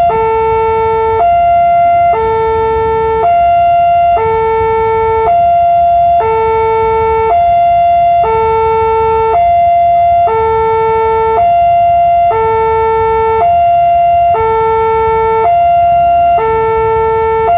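A level crossing alarm rings loudly in two alternating tones, switching about once a second.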